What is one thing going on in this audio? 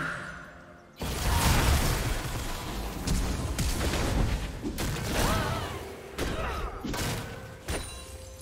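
Magic blasts and weapon hits crackle and thump in a busy fight.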